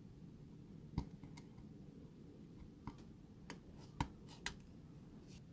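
A knife scores thin metal with sharp scratchy clicks.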